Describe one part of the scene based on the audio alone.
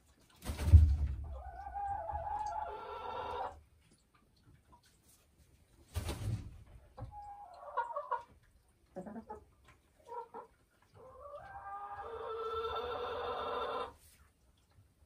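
A hen clucks and croons softly close by.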